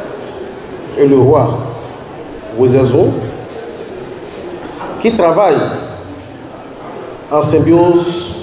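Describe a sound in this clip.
A man chants in short, rising and falling phrases through a microphone.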